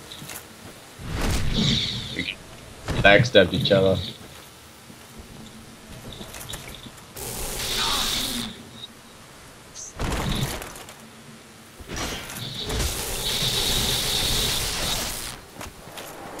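Fireballs whoosh and burst several times.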